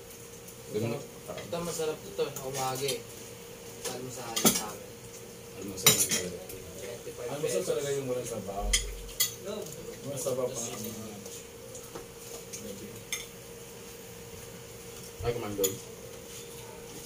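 Several young men and women chat and laugh close by.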